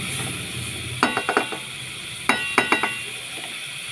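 A spatula taps and clinks against the rim of a metal pot.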